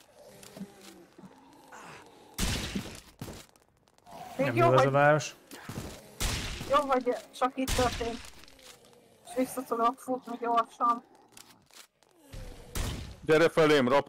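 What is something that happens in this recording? A rifle fires shots.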